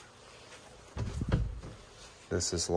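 A door bumps as it is pushed open.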